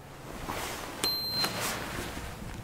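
A button beeps as it is pressed.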